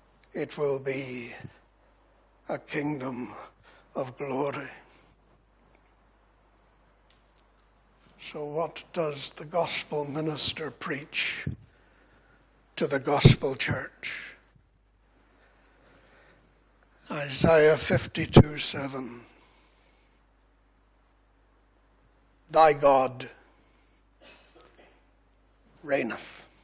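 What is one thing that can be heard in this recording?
An elderly man speaks with emphasis into a microphone, in bursts with pauses.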